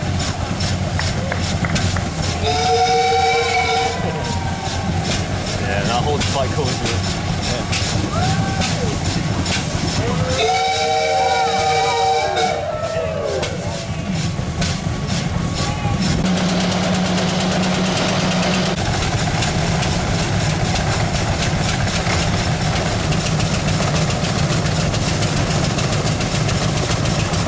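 A vintage car engine rumbles steadily while driving.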